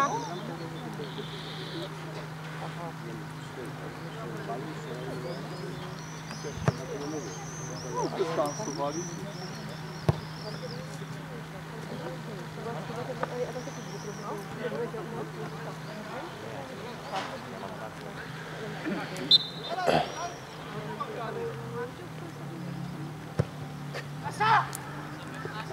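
Players shout to each other in the distance across an open field.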